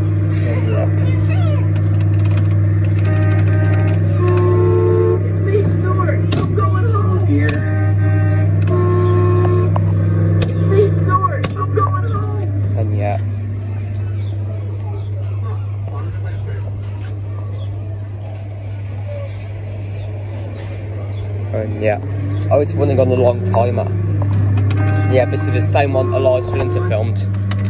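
A kiddie ride's motor hums steadily.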